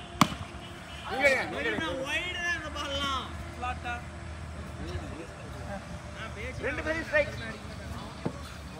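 Young men shout and call out across an open sports ground.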